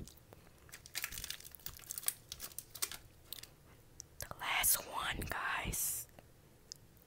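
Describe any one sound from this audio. Something crinkles and crackles right against a microphone.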